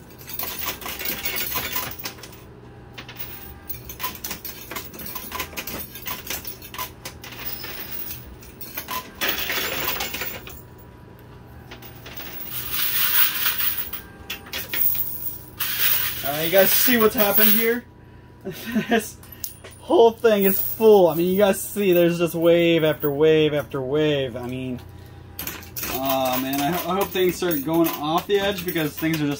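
Coins and tokens clink and clatter as a pusher shoves them along.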